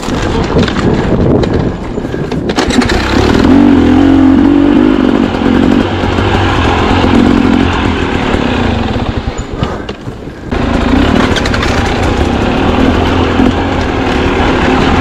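A dirt bike engine revs and growls up close, rising and falling.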